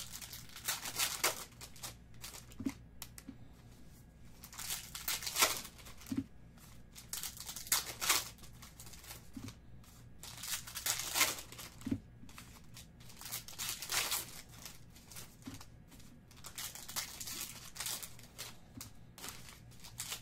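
Foil wrappers crinkle and rustle as hands tear open packs.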